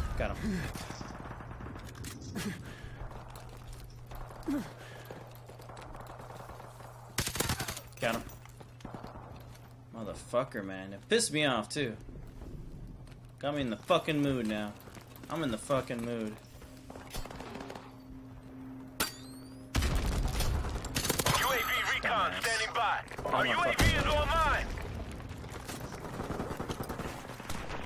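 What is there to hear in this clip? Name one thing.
Suppressed gunfire goes off in quick bursts.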